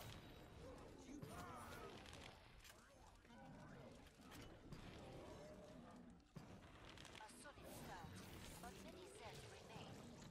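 Fires roar and crackle after explosions.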